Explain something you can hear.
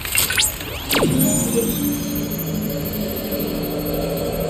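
A shimmering magical chime swells and hums.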